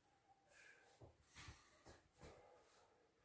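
Feet thump and shuffle on a floor.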